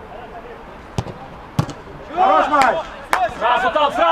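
A ball is kicked hard with sharp thumps.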